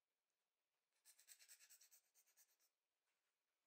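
A toy ball rattles briefly as a puppy pushes it.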